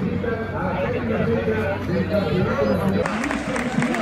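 A crowd chatters close by outdoors.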